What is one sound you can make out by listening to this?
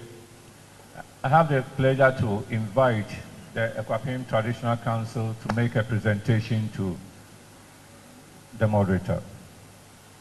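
An elderly man speaks calmly into a microphone over a loudspeaker in a large echoing hall.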